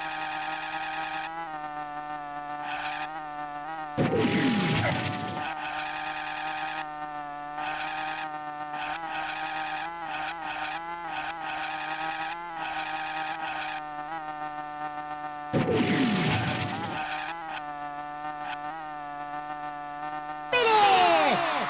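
A small kart engine hums steadily.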